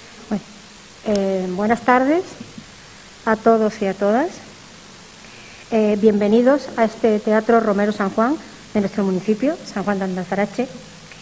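A woman speaks calmly into a microphone in a large hall.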